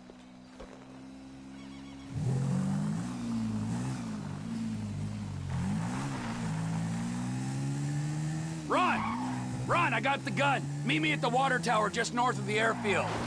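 A quad bike engine hums and revs up and down.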